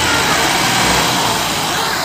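Men shout with excitement outdoors.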